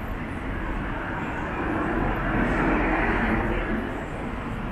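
A car drives past on a street nearby.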